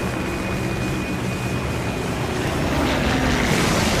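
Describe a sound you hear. A propeller plane's engines drone loudly.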